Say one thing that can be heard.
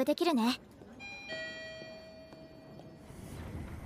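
An elevator chime rings.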